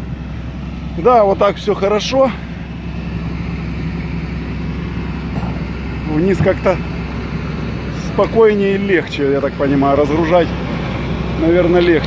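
A man speaks nearby in short bursts.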